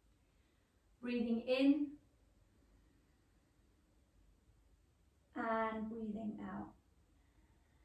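A woman speaks calmly, giving short instructions.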